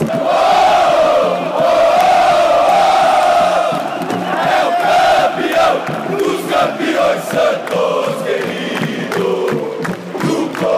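A large crowd of men sings a chant loudly together in an open stadium.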